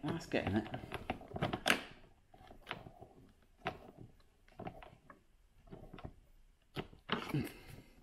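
A screwdriver scrapes and clicks as it turns a screw.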